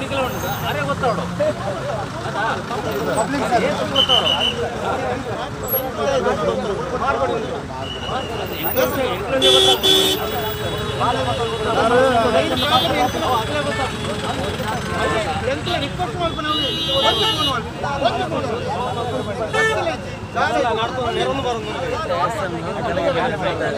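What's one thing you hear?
Several men argue loudly at close range, talking over one another.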